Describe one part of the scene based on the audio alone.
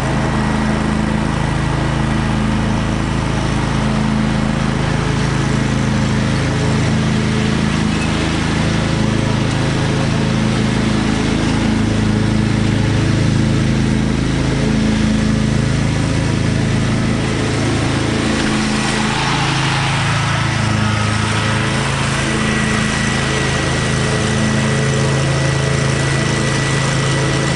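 A lawn mower engine drones steadily outdoors.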